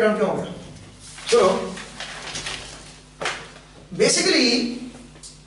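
A young man speaks in a lecturing tone in a room with a slight echo.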